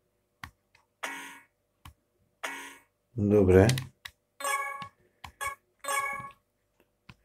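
Short electronic menu beeps sound several times.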